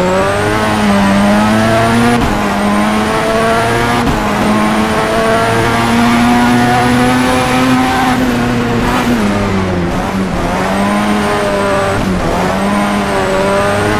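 A car engine roars at high revs, dropping briefly with each gear change.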